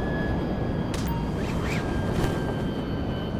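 A parachute snaps open with a flapping rush.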